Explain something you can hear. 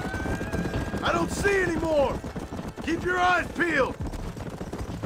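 A man calls out to another rider.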